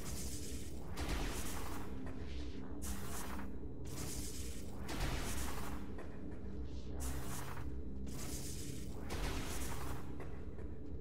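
Small bombs go off one after another with short, hissing bursts.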